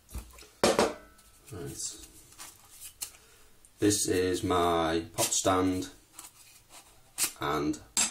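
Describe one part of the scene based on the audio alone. A metal canister rattles as it is turned in hand.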